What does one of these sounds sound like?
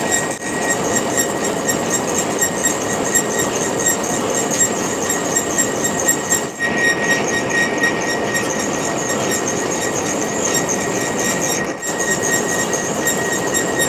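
A lathe motor whirs steadily as the spindle spins.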